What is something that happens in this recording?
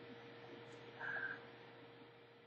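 A middle-aged man sighs with satisfaction close by.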